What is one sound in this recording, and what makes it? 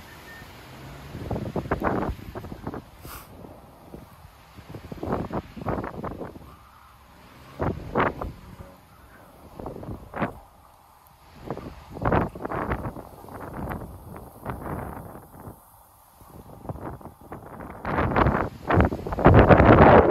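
Wind gusts rustle through the leaves of trees and bushes outdoors.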